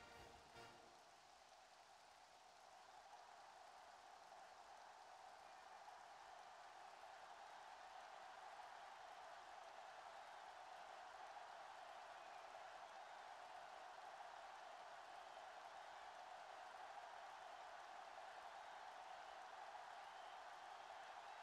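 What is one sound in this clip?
A large stadium crowd roars steadily and slowly grows louder.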